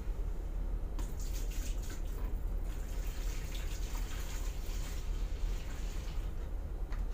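Liquid pours from a jug into a bucket and splashes.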